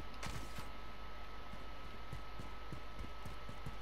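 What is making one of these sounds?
Footsteps run on wet pavement.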